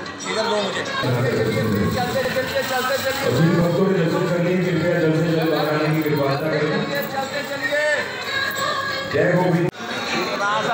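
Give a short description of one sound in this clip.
A group of men and women sing together in chorus.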